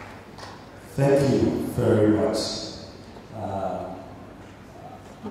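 A young man speaks calmly into a microphone, heard over loudspeakers in an echoing hall.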